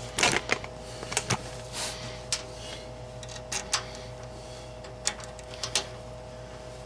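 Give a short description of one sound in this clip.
Hands knock and rattle parts inside a metal housing.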